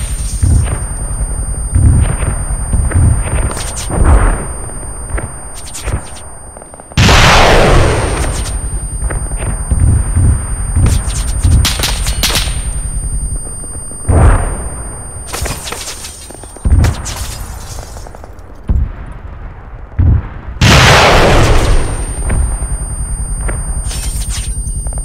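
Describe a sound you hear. Heavy explosions boom one after another, with rumbling blasts.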